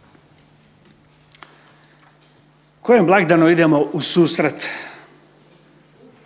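A middle-aged man reads out calmly into a microphone, heard through loudspeakers.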